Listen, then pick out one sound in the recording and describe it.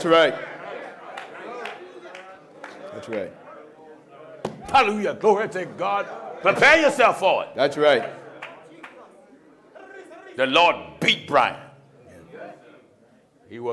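A man preaches with animation into a microphone, in a large echoing hall.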